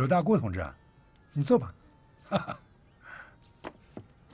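A middle-aged man speaks warmly, close by.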